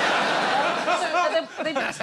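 A middle-aged man laughs.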